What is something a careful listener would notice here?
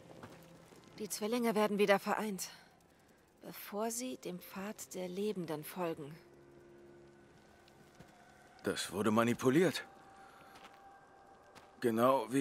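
A young woman speaks softly with wonder, close by.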